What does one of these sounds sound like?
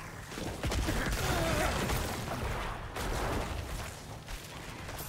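Video game battle sounds clash and rumble.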